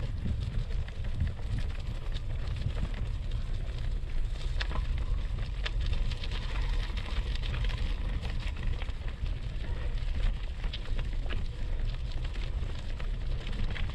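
Bicycle tyres crunch and crackle over dry leaves and dirt.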